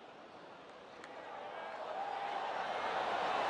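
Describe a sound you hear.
A crowd cheers, growing louder.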